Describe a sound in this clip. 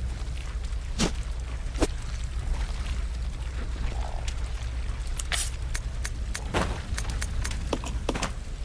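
Short electronic clicks and blips sound as menu options are chosen.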